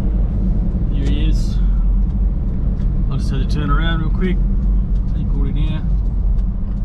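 A man talks calmly close by.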